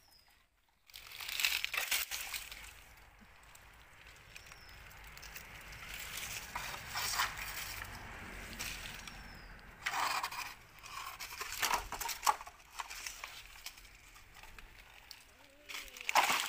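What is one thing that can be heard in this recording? Wooden poles knock and scrape against each other.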